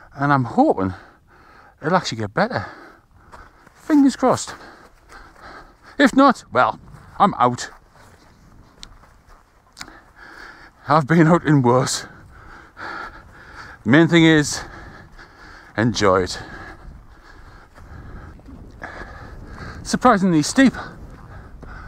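A middle-aged man talks calmly and close by, outdoors.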